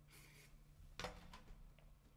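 A hollow knock sounds against a guitar's wooden body.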